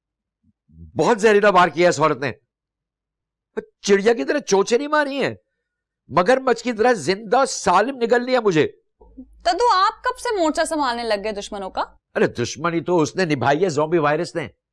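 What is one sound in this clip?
An elderly man speaks in a pleading, emotional voice nearby.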